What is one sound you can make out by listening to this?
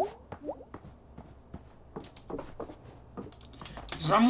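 Soft footsteps tap on a wooden floor.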